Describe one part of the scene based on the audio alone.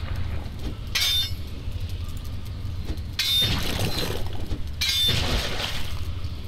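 A pickaxe strikes a heap of scrap with sharp metallic clangs.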